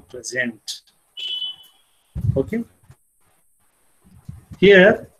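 A young man speaks calmly through an online call, heard through a microphone.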